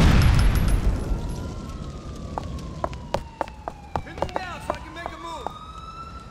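Footsteps slap quickly on pavement.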